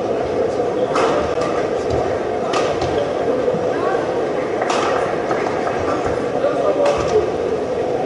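Rackets smack a shuttlecock back and forth in a rally.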